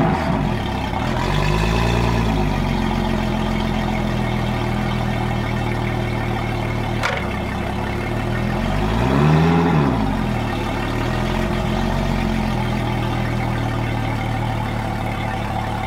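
An outboard motor idles steadily, its pitch briefly rising and falling as it revs.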